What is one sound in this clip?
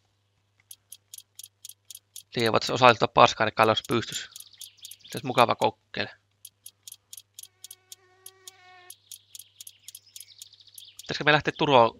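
A wrench clicks rapidly as it turns a wheel nut.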